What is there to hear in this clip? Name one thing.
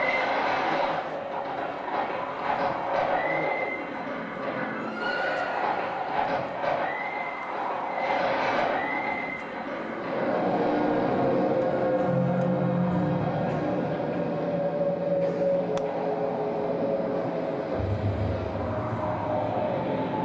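A woman sings with feeling into a microphone in a large echoing hall.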